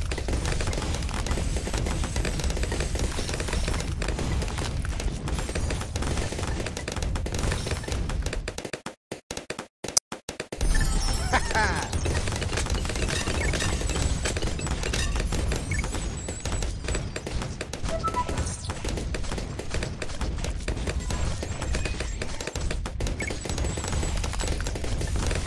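Video game balloons pop.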